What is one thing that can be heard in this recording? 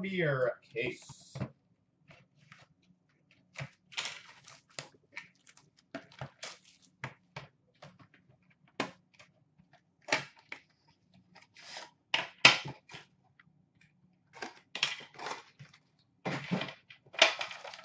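Cardboard packs tap and rustle as they are handled.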